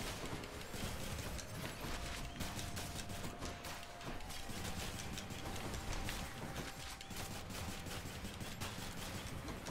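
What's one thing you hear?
Rapid slashing and magical zapping sounds of a video game fight ring out.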